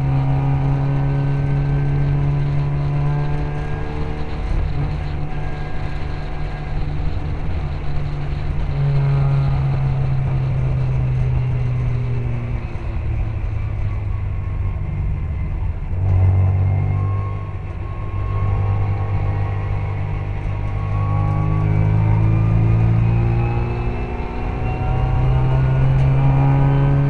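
Wind buffets the car steadily.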